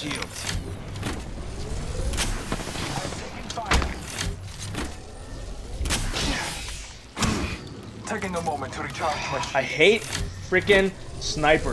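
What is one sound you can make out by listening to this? A video game shield item charges up with a hum.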